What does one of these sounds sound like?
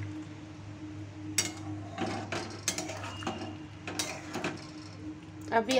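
A spatula scrapes and knocks against a metal pan while stirring.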